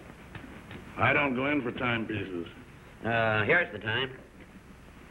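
A man speaks firmly and tensely at close range.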